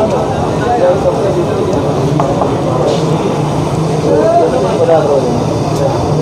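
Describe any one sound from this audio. Men talk together nearby.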